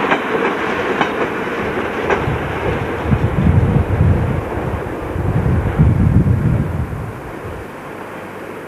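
Train carriages rumble and clatter over the rails close by.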